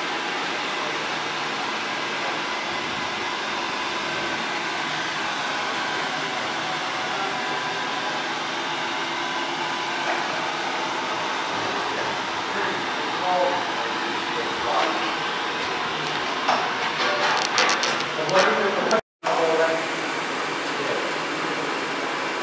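Electric motors and a fan hum steadily.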